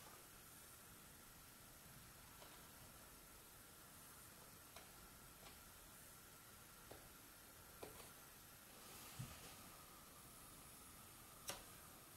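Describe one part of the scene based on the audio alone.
A small blade scrapes and scratches on a wooden stick.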